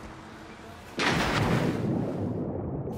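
A body plunges into water with a loud splash.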